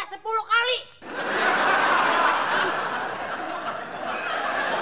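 Young people burst out laughing.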